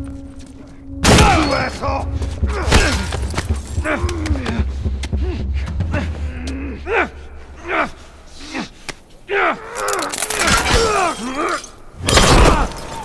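Two men scuffle and struggle with heavy thuds.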